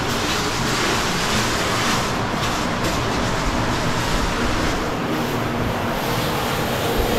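Shoes scrape and shuffle on rock close by.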